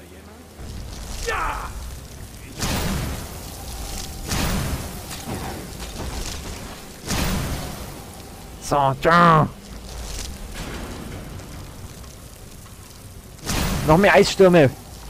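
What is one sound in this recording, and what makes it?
A magical frost spell blasts out with a loud icy whoosh.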